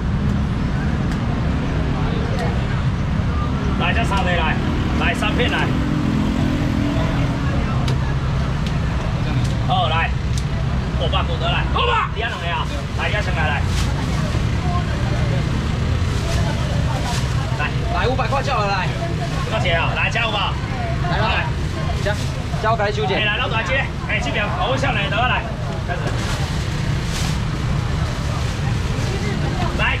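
A crowd murmurs steadily all around.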